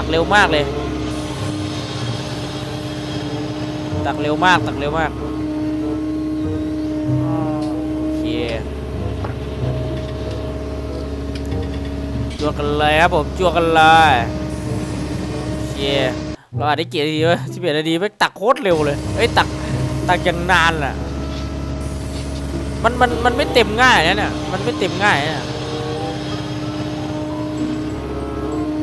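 An excavator engine hums steadily.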